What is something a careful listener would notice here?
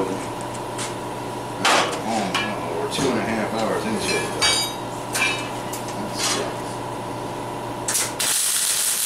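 Metal pieces clank and knock on a steel table.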